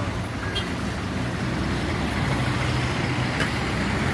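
A minibus engine hums as it drives past.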